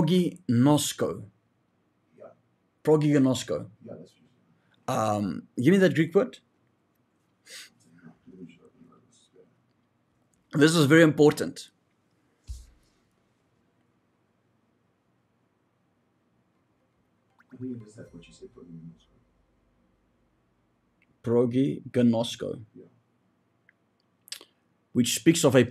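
A man talks with animation into a close microphone, in bursts with long pauses.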